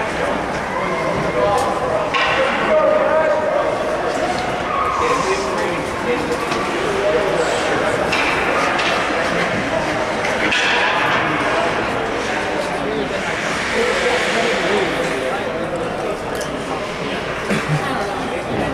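Young players shout to each other at a distance across an echoing rink.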